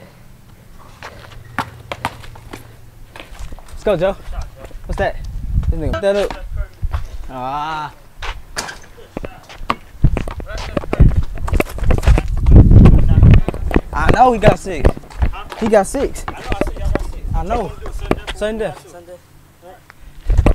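A basketball bounces on concrete.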